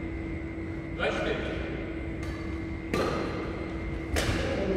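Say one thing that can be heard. Rackets hit a shuttlecock with sharp pops in a large echoing hall.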